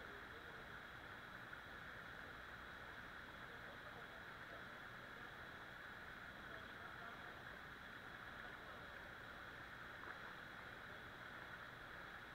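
Water ripples and laps close by.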